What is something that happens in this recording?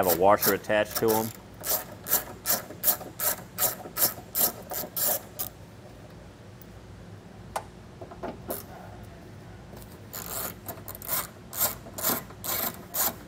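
A ratchet wrench clicks in quick, regular bursts.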